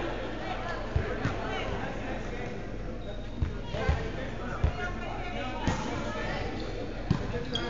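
A volleyball is struck hard, echoing through a large hall.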